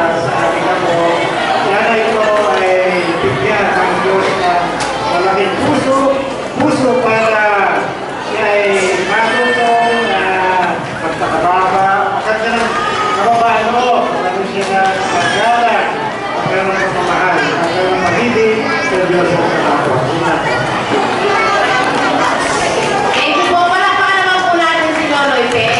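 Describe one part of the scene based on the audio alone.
A middle-aged man speaks with animation through a microphone over loudspeakers in an echoing hall.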